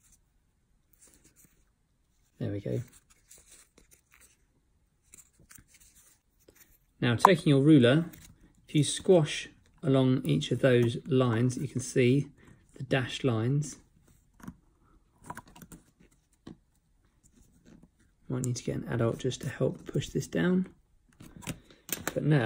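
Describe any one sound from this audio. Small cardboard pieces rustle and tap softly in hands.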